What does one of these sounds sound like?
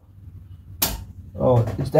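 A metal part clicks sharply.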